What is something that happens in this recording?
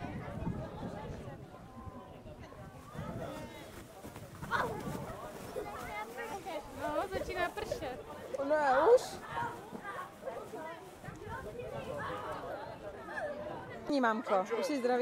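Young children shout and cheer excitedly outdoors.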